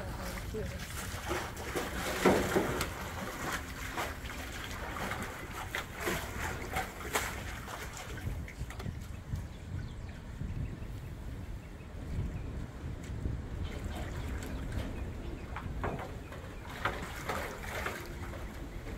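A tiger splashes and sloshes water in a metal tub.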